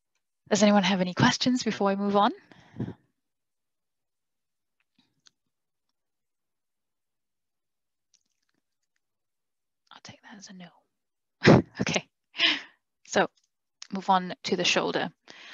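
A young woman speaks calmly over an online call, pausing now and then.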